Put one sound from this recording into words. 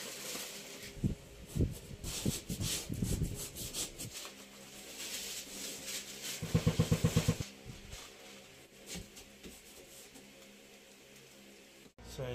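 A hand pats and presses paper against a wall with quick thumps.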